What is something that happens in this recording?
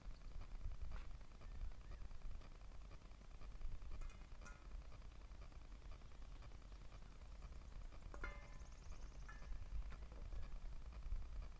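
A stick knocks against a small object on the ground.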